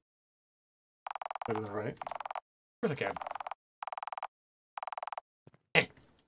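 Rapid game text blips chatter in short bursts.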